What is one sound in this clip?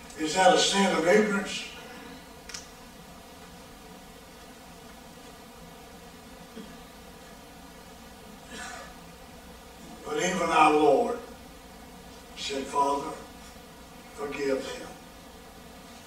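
An elderly man speaks slowly with long pauses through a microphone.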